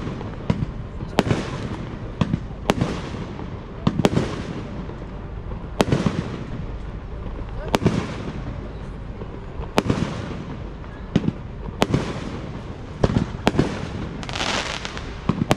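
Fireworks boom and echo across open water.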